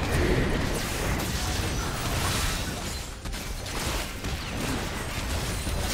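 Game weapons clash and strike repeatedly.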